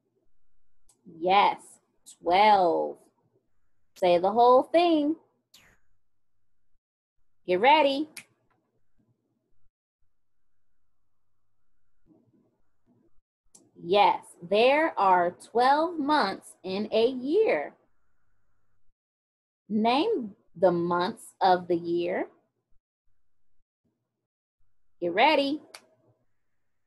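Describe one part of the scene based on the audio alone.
A young woman speaks calmly and close into a microphone, in short bursts with pauses.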